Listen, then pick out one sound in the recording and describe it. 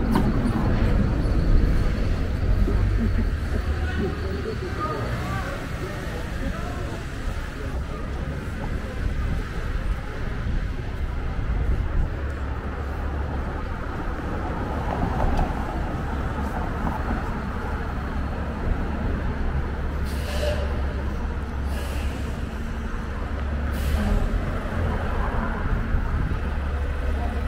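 Street traffic rumbles steadily outdoors.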